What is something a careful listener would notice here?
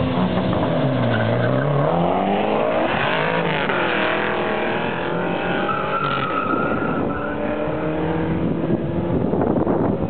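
A car engine roars as the car speeds away and fades into the distance.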